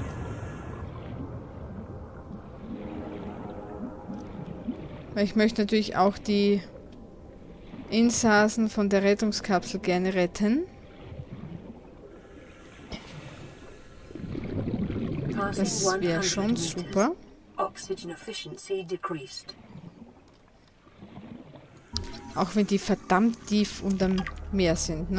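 Water swirls and bubbles.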